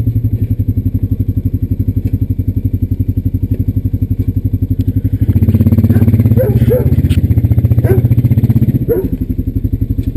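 A quad bike engine idles close by with a steady, rapid putter.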